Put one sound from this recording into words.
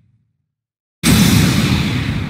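Magic energy crackles and roars in a burst.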